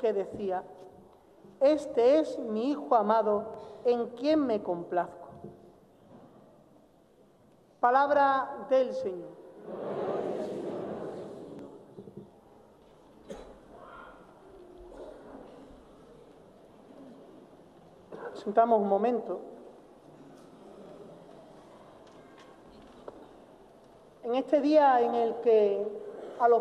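A man chants through a microphone in a large echoing hall.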